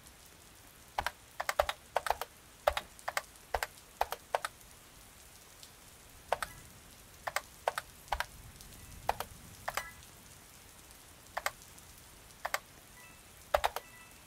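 Footsteps patter quickly across a hard floor.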